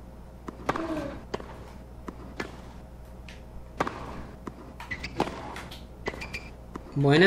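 A tennis racket strikes a ball with sharp pops, back and forth.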